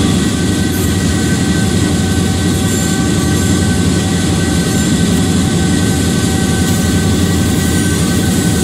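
A diesel locomotive engine rumbles steadily.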